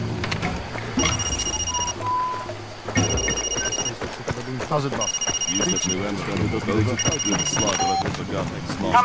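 A handheld electronic device beeps in short, even pulses.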